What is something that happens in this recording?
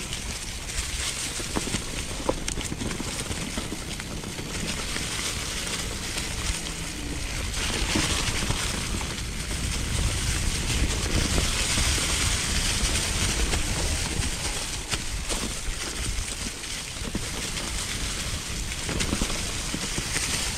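A bicycle frame rattles and clunks over bumps.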